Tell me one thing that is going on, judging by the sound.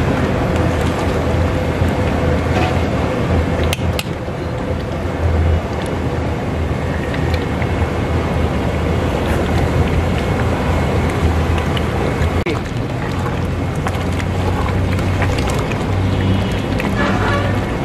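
A thick stew bubbles and simmers in a pot.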